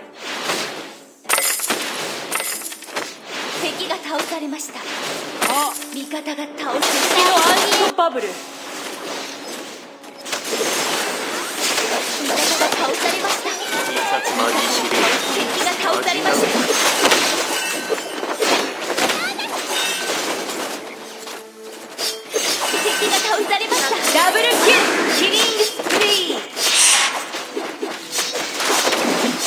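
Spell effects blast and crackle as game characters fight.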